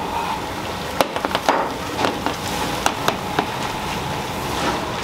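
Noodles splash into boiling water.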